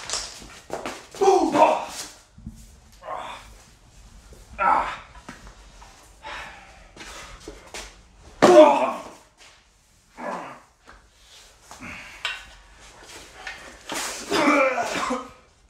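A man groans and shouts in pain.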